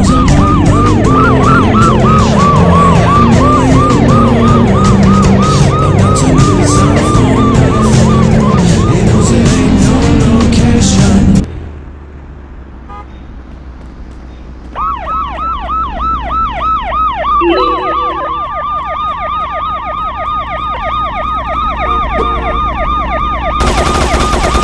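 A police siren wails rapidly up and down.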